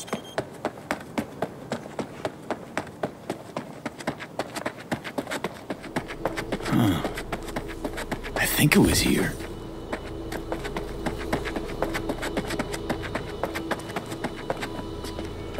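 Footsteps crunch steadily on dry, sandy ground.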